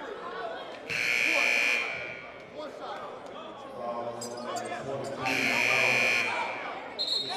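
A referee blows a shrill whistle twice.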